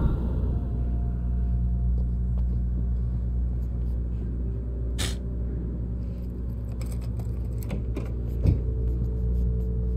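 A low steady hum drones throughout.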